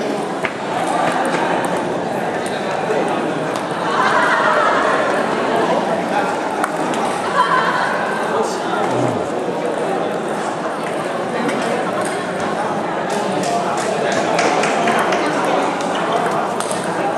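A crowd of children and adults chatters in the background.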